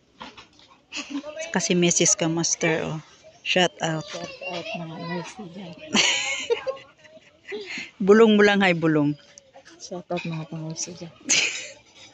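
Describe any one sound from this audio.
A woman speaks and laughs close by, with animation.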